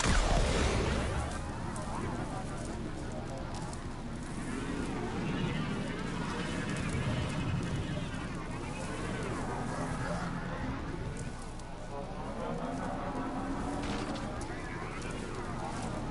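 A hover vehicle's engine roars and whooshes steadily.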